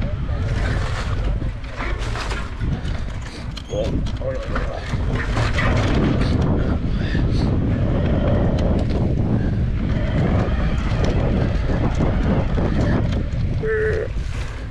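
Wind rumbles loudly against a microphone.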